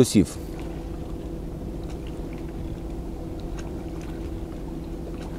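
An elderly man speaks calmly and close by, outdoors.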